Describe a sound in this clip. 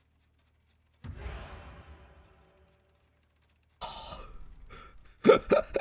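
Fiery spell bursts roar and crackle, then fade.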